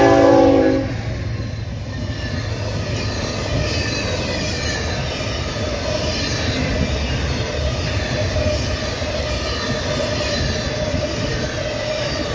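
Freight cars clatter and rumble steadily over the rails.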